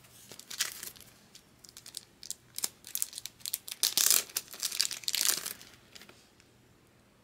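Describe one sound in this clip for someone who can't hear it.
Plastic card sleeves rustle and crinkle close by.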